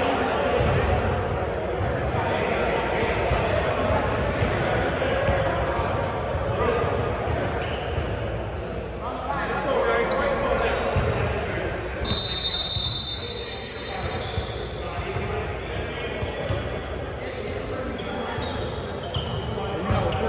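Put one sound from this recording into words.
Several men talk and call out in a large echoing hall.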